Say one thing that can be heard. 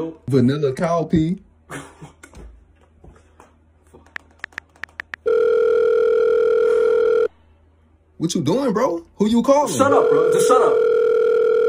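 A young man speaks casually and close by.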